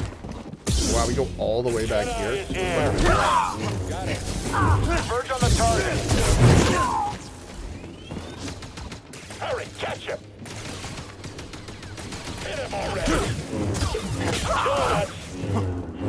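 Blasters fire in rapid bursts.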